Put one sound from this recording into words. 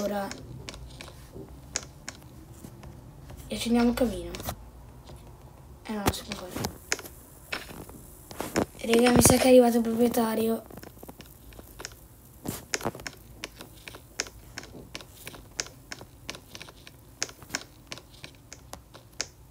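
Footsteps tap quickly and evenly on a hard floor.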